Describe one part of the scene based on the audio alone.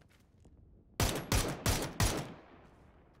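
A few rifle shots crack in a video game gunfight.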